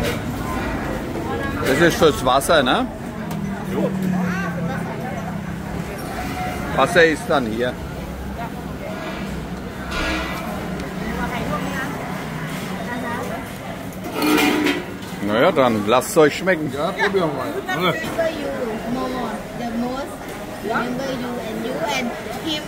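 A hum of chatter from many people fills a busy open space.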